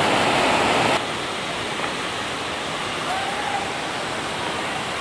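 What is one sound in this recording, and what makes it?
A shallow stream trickles and babbles over stones.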